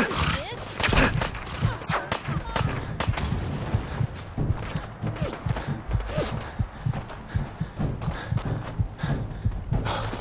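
Heavy footsteps crunch quickly over rough ground.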